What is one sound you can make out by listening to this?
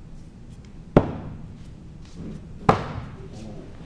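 Axes thud sharply into wooden targets.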